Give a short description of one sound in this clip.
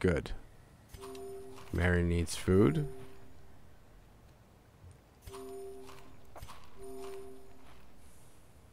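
A soft magical chime shimmers.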